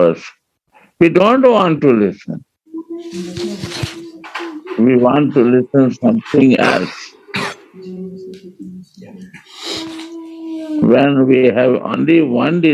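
An elderly man speaks calmly, heard through an online call.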